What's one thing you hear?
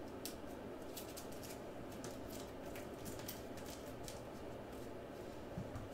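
Trading cards slide and rustle against each other as they are handled.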